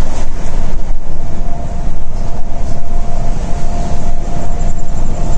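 A Volvo diesel coach engine drones at highway cruising speed, heard from inside the cab.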